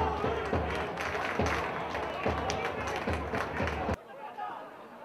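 A small crowd cheers and shouts outdoors.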